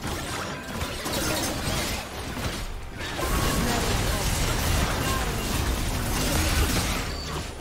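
Magic spell effects whoosh and crackle in quick bursts.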